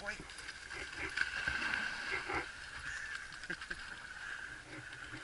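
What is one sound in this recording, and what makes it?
A dog splashes into water.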